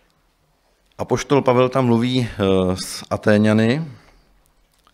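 A man speaks calmly into a microphone in a reverberant hall.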